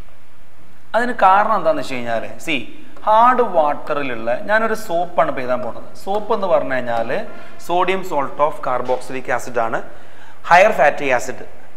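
A man speaks in a lively way, teaching, close to a microphone.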